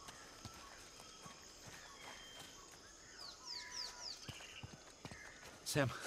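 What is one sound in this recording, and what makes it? Footsteps run over dirt and gravel.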